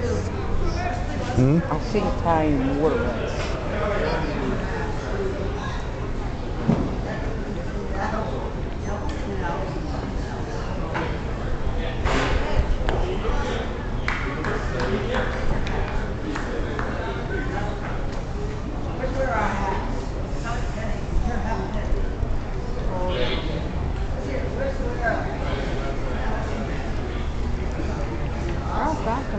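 A crowd of spectators chatters steadily close by, outdoors.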